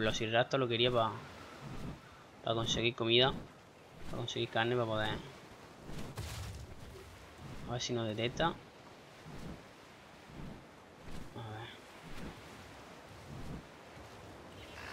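Large leathery wings flap steadily.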